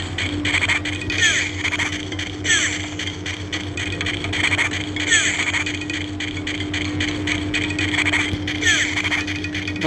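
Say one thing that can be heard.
Upbeat video game music plays steadily.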